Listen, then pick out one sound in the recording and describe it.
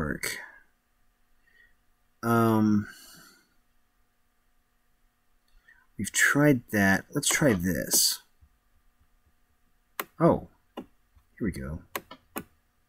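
A man speaks casually into a nearby microphone, in short bursts.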